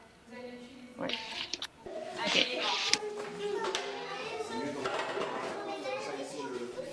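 Young children chatter and call out in a room.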